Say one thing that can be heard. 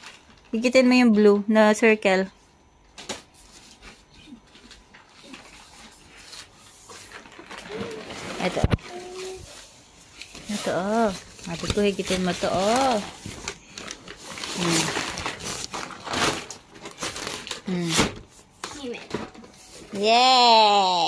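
Nylon fabric rustles and crinkles as a play tent is handled.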